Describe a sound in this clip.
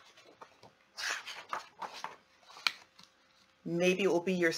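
A woman reads aloud close to a microphone.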